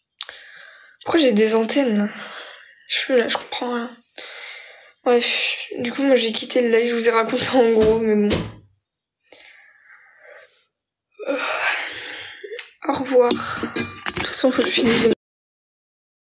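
A young woman talks casually and close to a phone's microphone.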